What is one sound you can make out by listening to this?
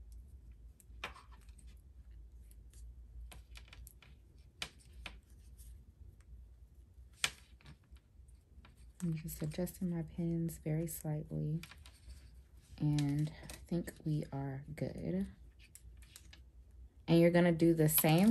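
Metal pins click faintly as they are pushed into fabric.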